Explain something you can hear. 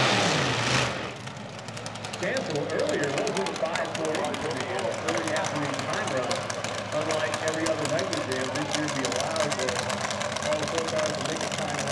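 A drag racing car's engine idles with a low, steady rumble.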